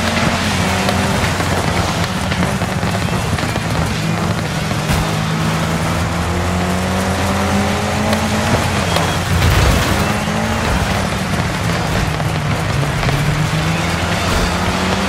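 Tyres skid and crunch on loose dirt.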